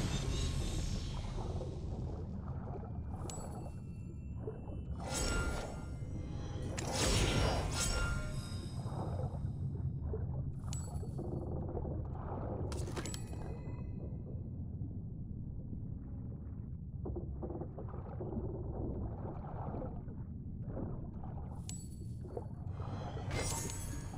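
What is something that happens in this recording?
Water rumbles and churns, muffled as if heard underwater.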